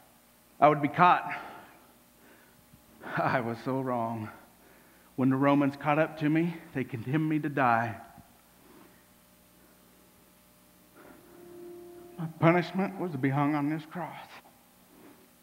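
A man speaks loudly and with feeling, in bursts with pauses.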